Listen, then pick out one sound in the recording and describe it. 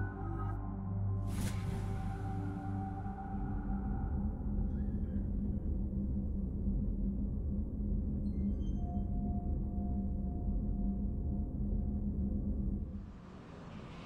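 A deep engine hum drones steadily, then fades.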